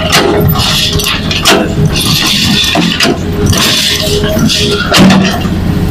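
Soil and rocks spill from an excavator bucket.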